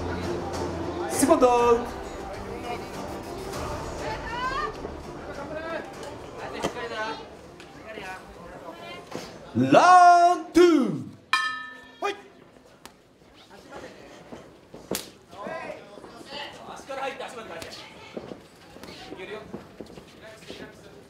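Spectators shout and call out in a large echoing hall.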